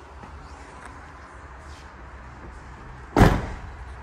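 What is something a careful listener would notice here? A van cab door slams shut with a heavy thud.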